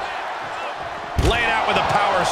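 A body slams hard onto the floor with a heavy thud.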